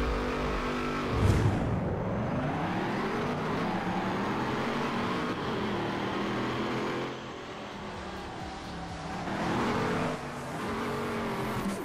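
A racing car engine revs high and shifts through the gears.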